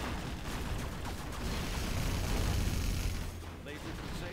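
Gunfire rattles in a battle.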